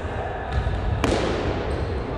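A ball is kicked hard with a sharp thump in an echoing hall.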